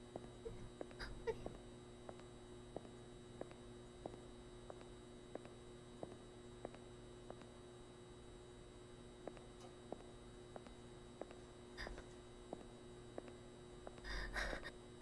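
Footsteps tap evenly on a hard floor.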